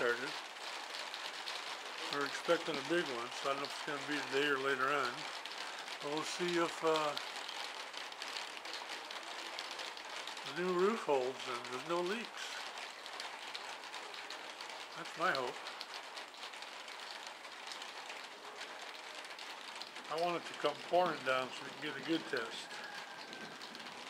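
Rain patters steadily on a metal roof.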